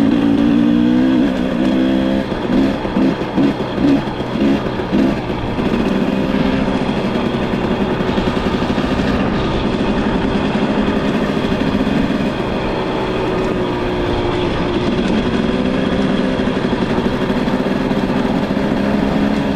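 Tyres crunch steadily over a gravel road.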